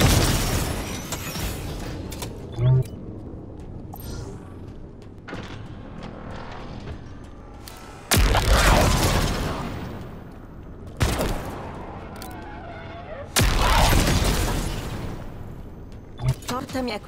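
A heavy energy weapon fires with loud blasts.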